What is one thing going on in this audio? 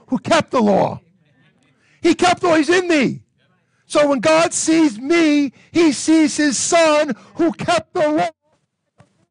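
A middle-aged man preaches with animation into a microphone.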